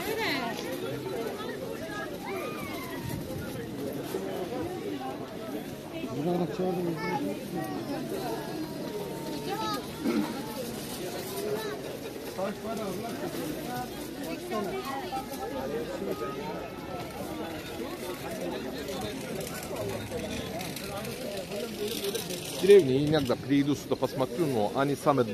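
Many voices chatter in a busy outdoor market.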